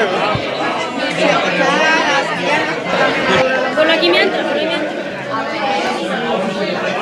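A group of men and women chat and laugh together, close by.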